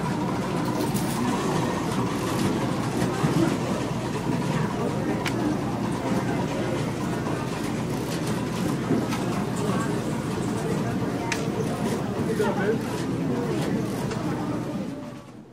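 Slot machines chime and jingle with electronic tones.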